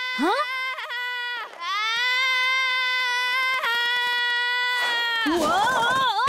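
A young girl screams long and shrilly.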